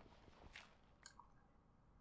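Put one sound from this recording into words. Dirt blocks crunch as they break.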